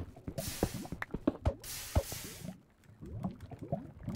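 Lava bubbles and hisses.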